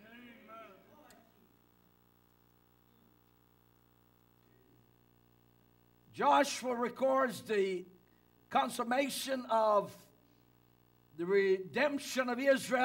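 A man preaches into a microphone with emphatic pauses.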